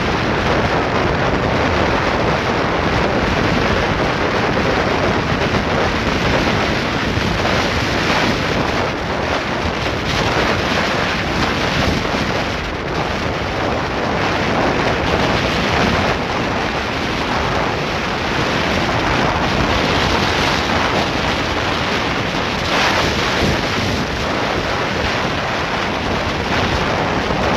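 A motorcycle engine drones as it rides along a paved road.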